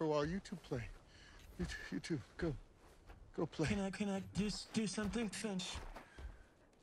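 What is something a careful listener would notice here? An elderly man talks with animation close by.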